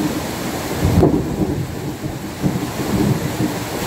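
Thunder rumbles loudly outdoors.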